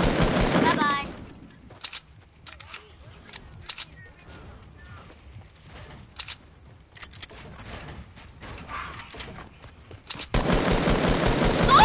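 Building pieces snap into place with quick clicks.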